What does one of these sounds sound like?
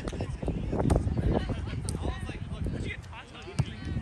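A volleyball is struck with a thud.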